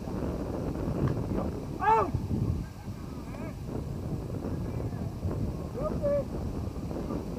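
Men shout across a field in the distance.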